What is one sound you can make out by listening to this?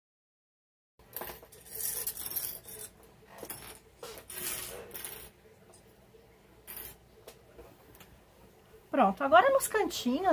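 Fabric rustles and slides across a table.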